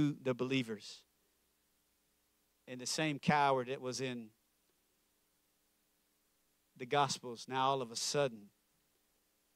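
A young man speaks with animation through a microphone in short bursts.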